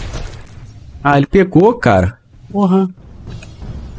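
A man talks into a microphone.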